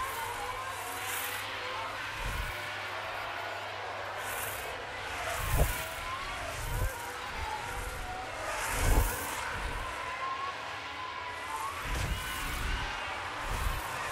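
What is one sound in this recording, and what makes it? Racing cars roar past close by in quick whooshes.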